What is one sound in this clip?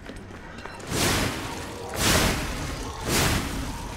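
Metal blades clash loudly with bursts of noise.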